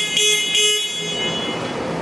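An electronic alarm beeps twice in quick succession.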